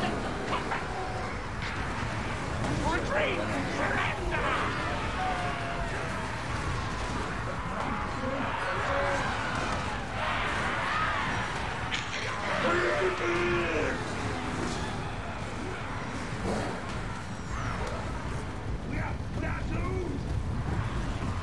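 Creatures snarl and screech in a noisy battle.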